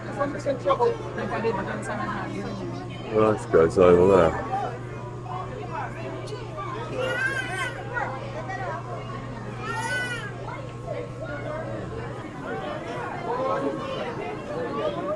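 A crowd of people chatters close by.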